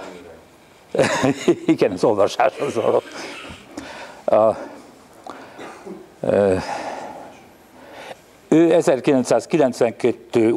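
An elderly man reads out calmly into a microphone in a room with a light echo.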